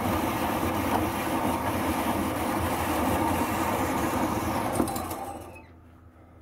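A power hacksaw blade rasps steadily back and forth through metal, then winds down.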